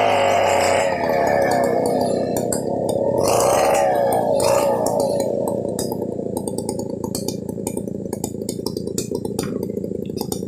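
A chainsaw idles with a steady rattling putter.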